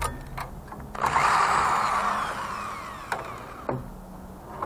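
A power drill whirs loudly.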